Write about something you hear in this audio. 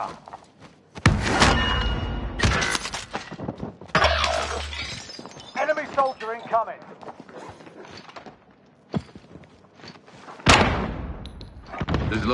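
Gunshots crack loudly in sharp bursts.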